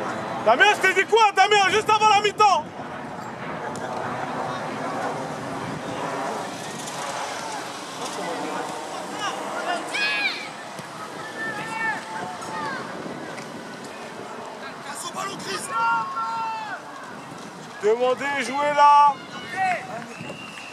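Teenage boys shout to each other across an open football pitch at a distance.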